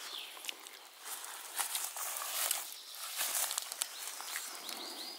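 Footsteps crunch and rustle through dry grass and leaves.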